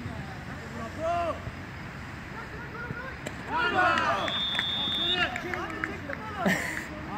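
Men shout to each other at a distance outdoors.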